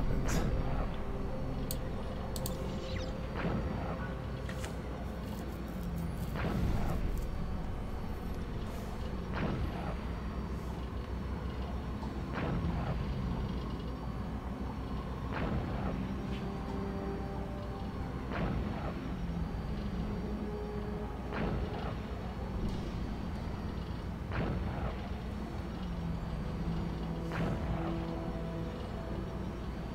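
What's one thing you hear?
Whooshing bursts sweep past again and again, every few seconds.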